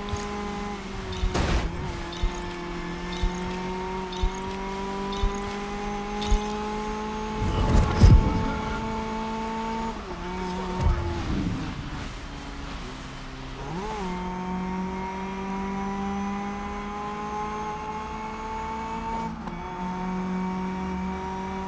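A racing car engine roars at high revs, shifting up through the gears.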